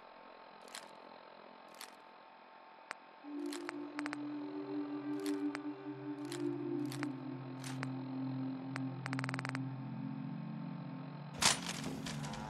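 A device clicks softly as its menu scrolls.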